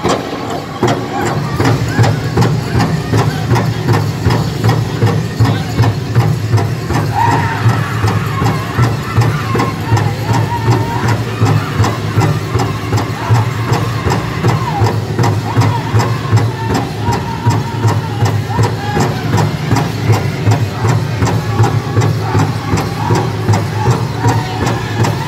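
A group of men sing in loud, high chanting voices.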